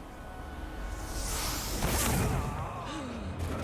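A ghostly blast whooshes and roars loudly.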